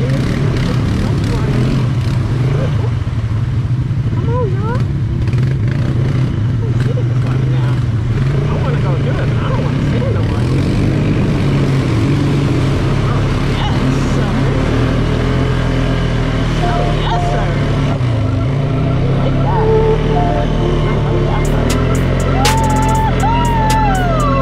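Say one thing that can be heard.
A quad bike engine rumbles steadily up close.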